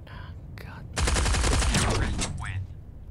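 A rapid burst of automatic gunfire rattles loudly.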